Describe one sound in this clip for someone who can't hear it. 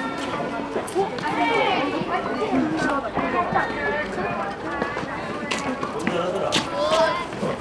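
A tennis ball is struck with a racket and pops sharply.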